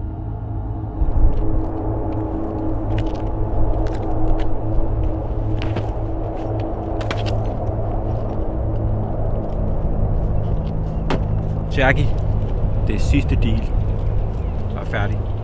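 Wind blows hard across an open outdoor space.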